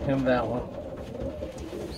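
A pigeon coos softly close by.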